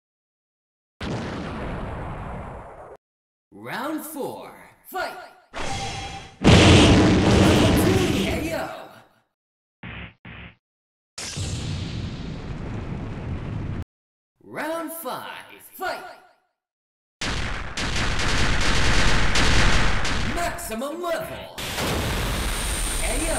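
Loud whooshing blasts and impacts burst out in a fighting game.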